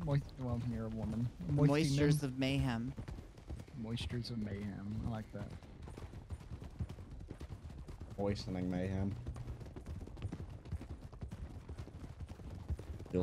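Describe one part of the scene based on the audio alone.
Horses' hooves clop steadily on gravel.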